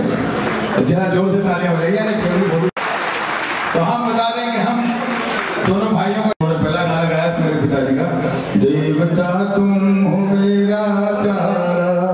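A man sings through a microphone over loudspeakers, holding long notes.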